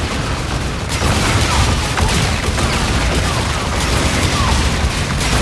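A gun fires rapid energy blasts.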